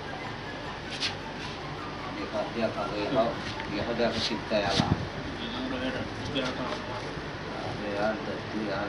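Stiff rope rustles and creaks as hands weave it.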